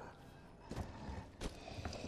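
Footsteps thump up wooden stairs.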